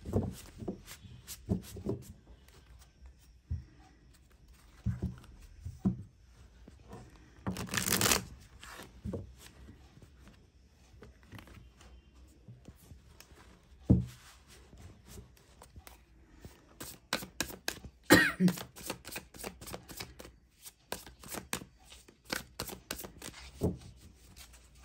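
Cards slap and tap on a table.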